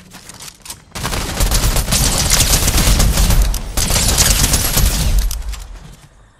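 Rapid gunfire rattles loudly in bursts.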